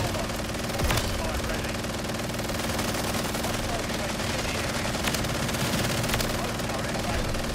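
A minigun fires in a rapid, continuous roar.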